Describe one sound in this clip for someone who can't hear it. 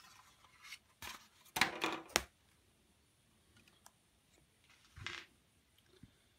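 A cardboard box rustles and scrapes against paper.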